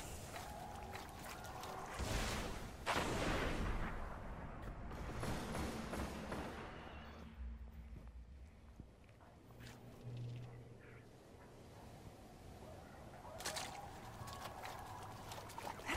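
Water splashes underfoot as someone wades through shallows.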